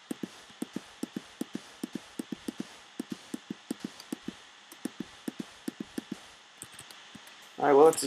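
Footsteps crunch on sand at a steady, quick pace.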